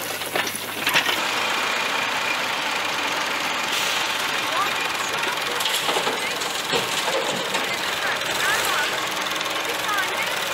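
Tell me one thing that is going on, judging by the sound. A tractor's engine chugs nearby.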